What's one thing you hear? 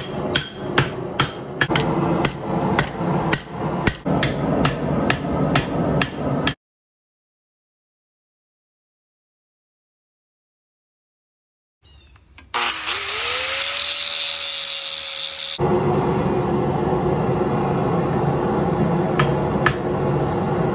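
A hammer rings sharply on an anvil in quick, repeated blows.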